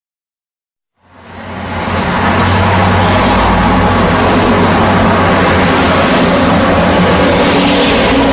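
Traffic hums steadily along a busy road.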